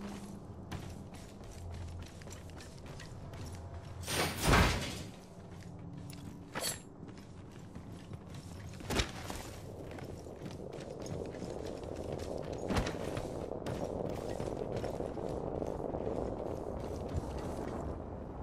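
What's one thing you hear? Footsteps thud on wooden planks and hard floors.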